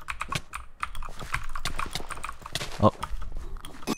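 Quick footsteps patter on hard blocks.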